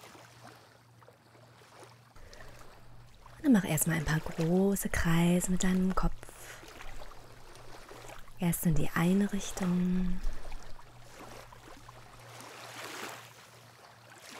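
Small waves lap softly at the shore.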